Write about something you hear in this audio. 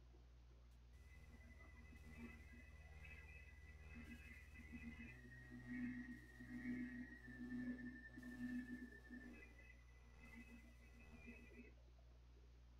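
A simple electronic title melody plays.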